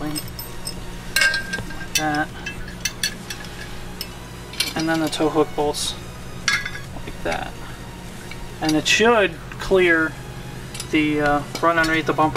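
Metal parts clink as a bolt is fitted into a bracket.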